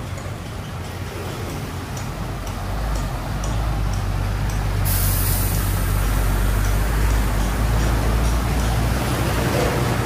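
A truck engine rumbles low as it passes close by.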